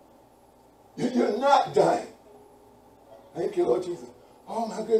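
A man speaks calmly and clearly, pausing between phrases.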